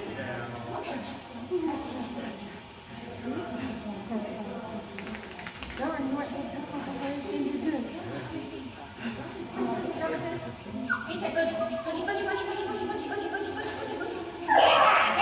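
A woman calls out commands with animation in a large echoing hall.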